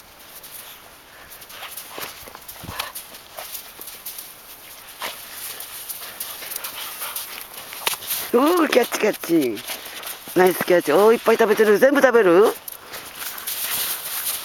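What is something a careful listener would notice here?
Dogs bound through deep snow, crunching and swishing.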